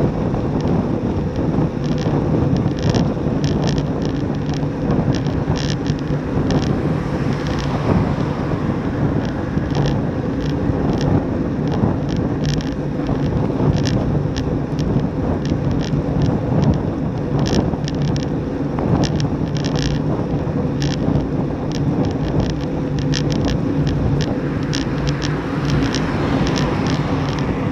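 Bicycle tyres hum on smooth asphalt.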